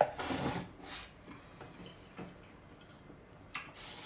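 Liquid pours from a jug into a cup.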